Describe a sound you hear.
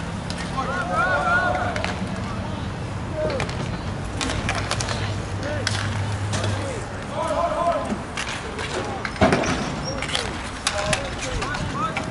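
Skate wheels roll and scrape on a hard rink floor.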